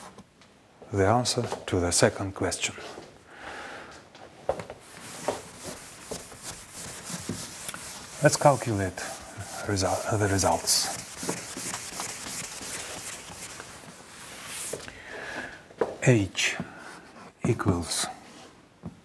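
An elderly man speaks calmly, as if explaining something.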